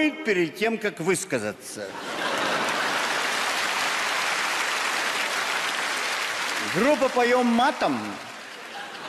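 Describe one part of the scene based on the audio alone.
An elderly man speaks with animation into a microphone, heard through loudspeakers.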